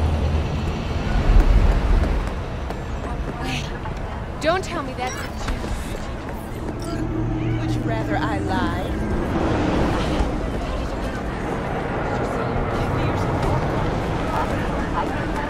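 A crowd murmurs in a busy street.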